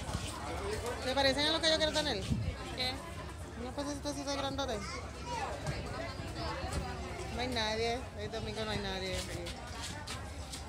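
A group of young adults chatter and call out nearby.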